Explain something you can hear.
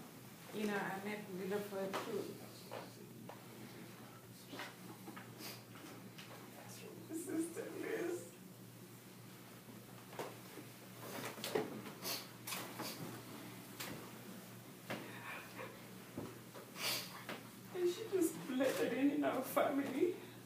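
A man reads aloud to a small group in a room.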